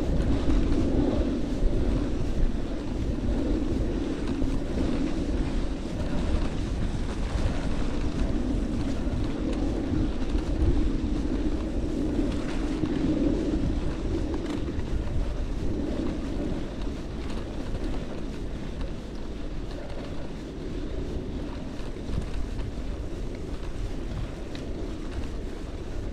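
Bicycle tyres crunch and rumble over a bumpy dirt track.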